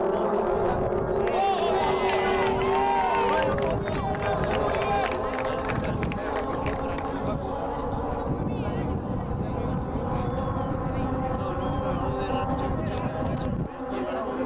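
Spectators cheer and call out in the distance.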